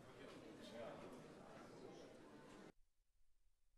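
A crowd of men and women chat loudly.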